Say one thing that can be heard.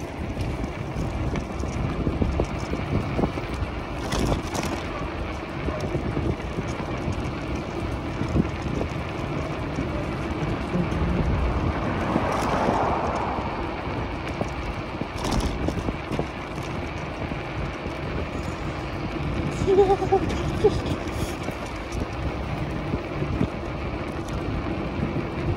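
Wind rumbles steadily past a moving bicycle outdoors.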